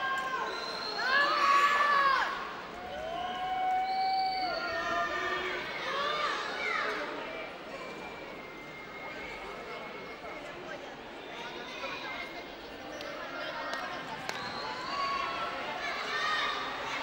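A crowd of young women cheers and screams loudly in a large echoing hall.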